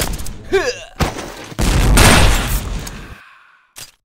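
An assault rifle fires two shots.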